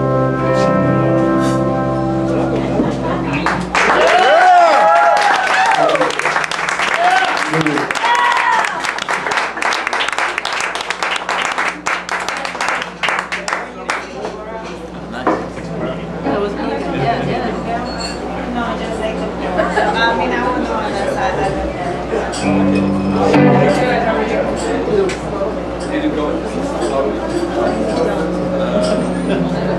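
Electric guitars strum and pick.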